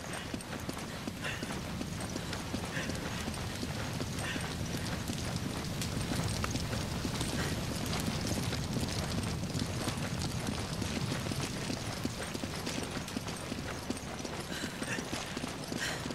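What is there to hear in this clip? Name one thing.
Heavy boots thud on stone steps at a steady pace.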